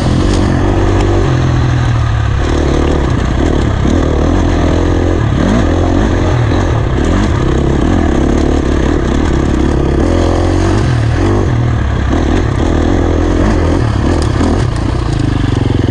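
Tyres crunch over a rocky dirt trail.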